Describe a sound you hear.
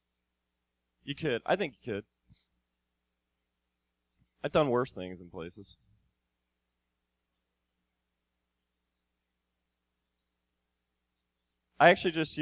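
A man speaks in bursts through a microphone, with long pauses between.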